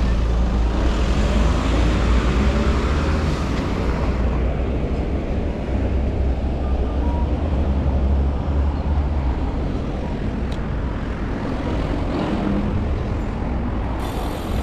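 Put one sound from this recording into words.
Light traffic hums along a street outdoors.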